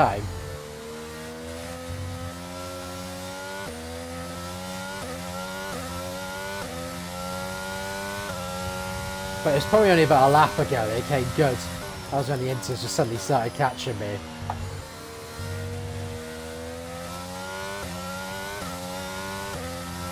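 A racing car engine whines, climbing in pitch and dropping with each gear change.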